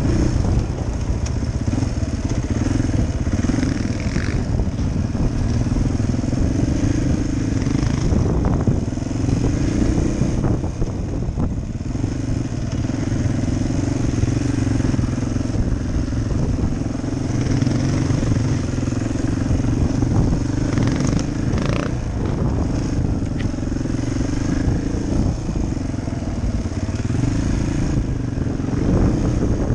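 A dirt bike engine chugs at low speed.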